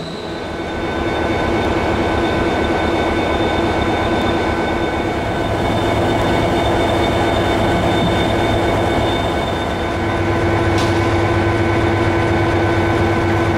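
A diesel locomotive engine idles with a loud, steady rumble and hum.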